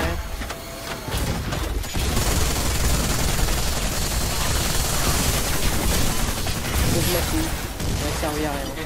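Loud explosions boom and roar.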